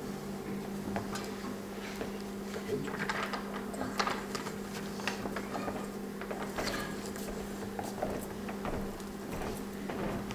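Soft knocks and taps come from a guitar being handled.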